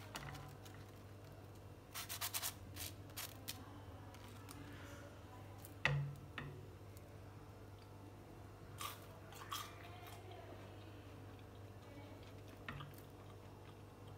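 Crisp fries crunch as a hand picks them up and dips them.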